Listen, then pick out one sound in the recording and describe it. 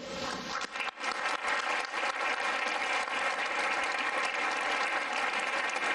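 A crowd applauds steadily.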